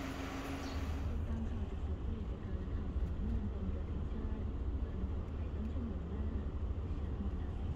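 A vehicle engine hums steadily from inside.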